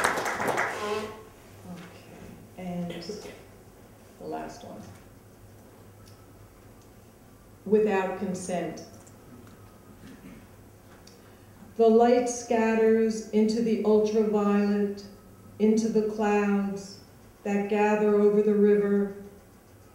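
An older woman reads out calmly into a microphone.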